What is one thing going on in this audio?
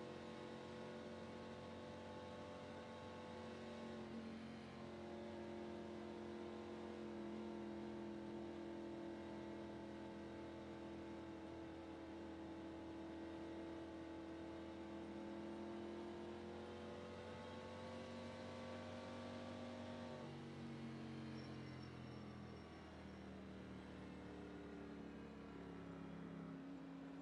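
A racing car engine drones steadily at high revs, its pitch shifting slightly and dropping near the end.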